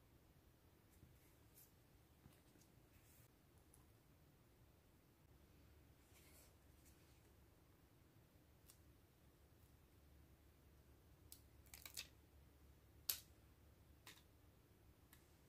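Paper crinkles and rustles softly as fingers handle a sticker.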